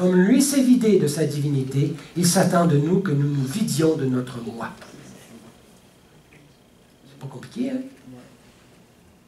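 An elderly man speaks calmly through a headset microphone, pausing now and then.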